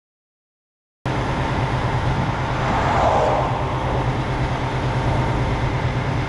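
A truck engine idles nearby with a steady low rumble.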